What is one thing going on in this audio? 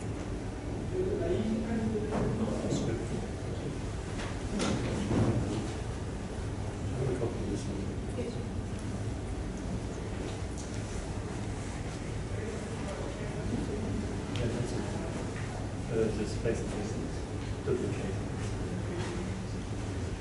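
A man talks quietly nearby, with short pauses.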